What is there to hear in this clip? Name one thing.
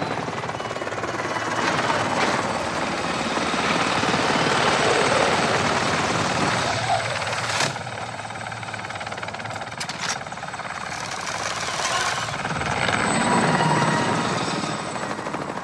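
A military helicopter's rotor thumps overhead.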